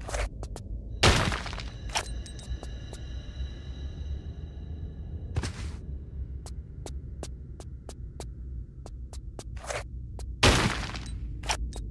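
Darts shoot out of a wall with sharp whooshes.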